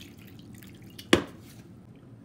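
A can is set down on a counter with a knock.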